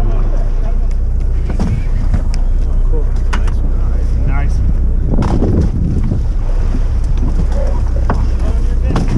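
Strong wind buffets and rumbles outdoors on open water.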